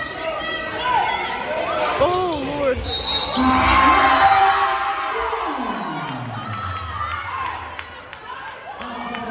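A crowd of spectators chatters and cheers in a large echoing gym.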